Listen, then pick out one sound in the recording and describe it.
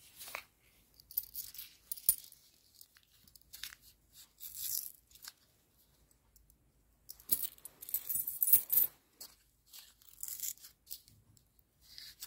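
A paper wrapper crinkles and rustles.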